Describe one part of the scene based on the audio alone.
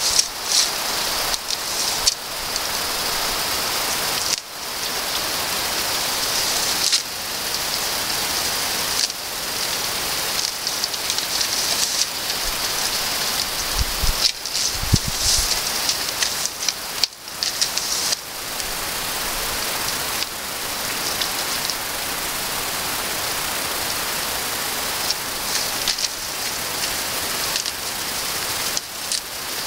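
A goat tears and munches grass close by.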